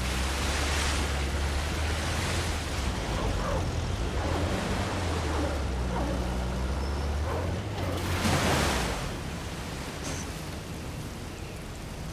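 A waterfall roars nearby.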